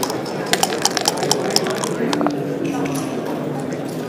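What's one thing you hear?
Dice rattle and tumble onto a board.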